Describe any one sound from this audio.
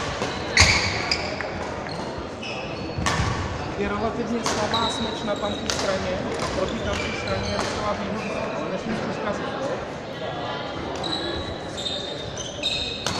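Sports shoes squeak sharply on a hall floor.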